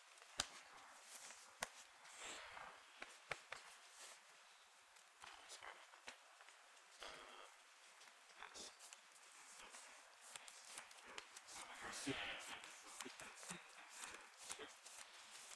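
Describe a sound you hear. Playing cards tap and slide on a soft mat.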